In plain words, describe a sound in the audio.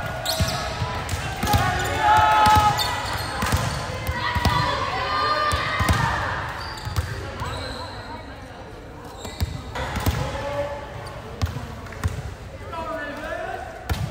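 A volleyball bounces on a hard floor.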